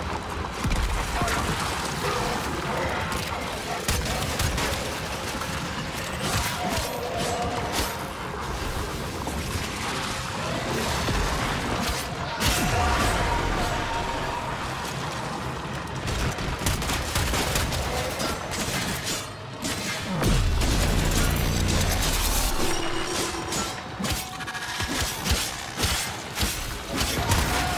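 Rapid gunfire crackles and rattles.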